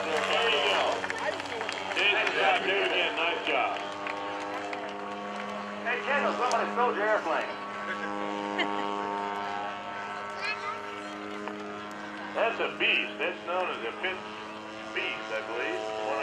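A small propeller plane's engine drones steadily overhead.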